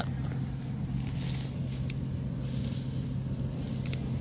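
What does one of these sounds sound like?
Leafy stems rustle as they are picked by hand.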